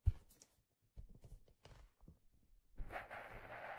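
Fingers tap and scratch softly on a hard object close to a microphone.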